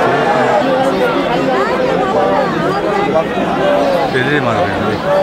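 A large crowd sings and chants together outdoors.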